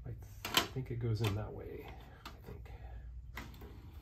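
A disc player's tray clicks and whirs open and shut.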